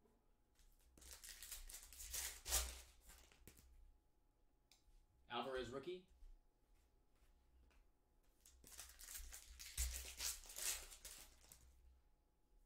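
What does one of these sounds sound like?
Foil wrappers crinkle and tear as packs are opened by hand.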